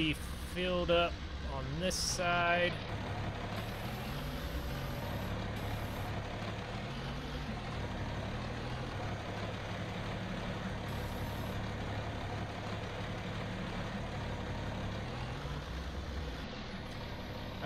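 A tractor engine idles and rumbles steadily.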